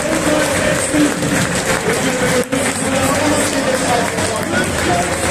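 A large stadium crowd chants and sings loudly in the open air.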